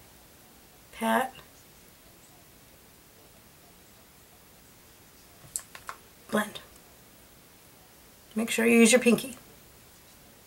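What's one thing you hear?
A woman speaks calmly in short bursts, close by.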